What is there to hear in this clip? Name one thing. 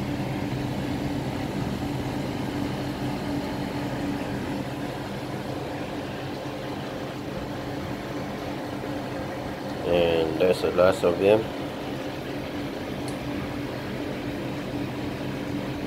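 A water pump hums steadily.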